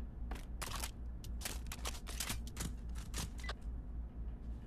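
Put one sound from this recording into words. A gun's metal parts clack and rattle as it is handled.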